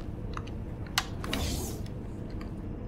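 A heavy sliding door hisses open.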